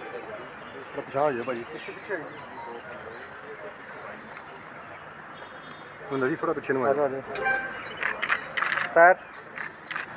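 A man talks calmly at a distance outdoors.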